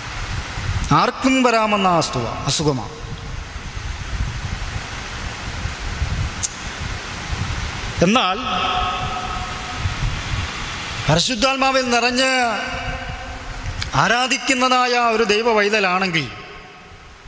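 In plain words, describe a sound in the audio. A young man sings slowly into a microphone.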